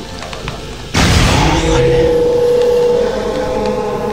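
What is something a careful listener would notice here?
A magic spell bursts with a loud whoosh and ringing hum.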